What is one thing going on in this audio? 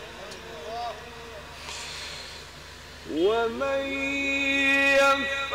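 A man chants in a long, drawn-out melodic voice through a microphone and loudspeakers, rising to a loud sustained note.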